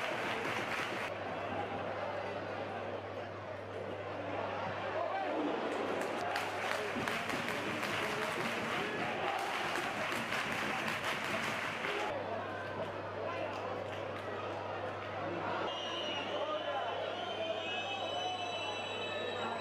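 A large crowd roars and murmurs in a stadium outdoors.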